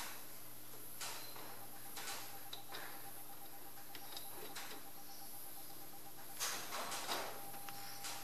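A chuck key clicks against a metal lathe chuck.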